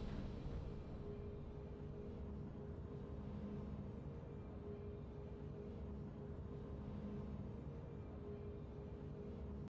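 Triumphant music plays steadily.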